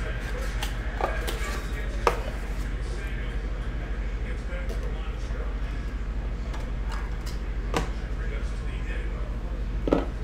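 Plastic card cases click and clack in a hand.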